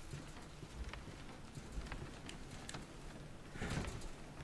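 Footsteps thud softly on wooden stairs.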